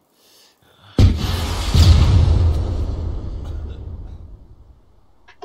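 A rocket launcher fires with a loud boom that rumbles away.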